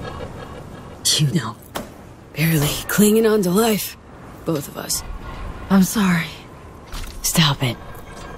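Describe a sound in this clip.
A young woman speaks quietly and sadly.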